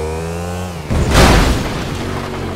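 A car smashes through a wooden fence with a loud crash.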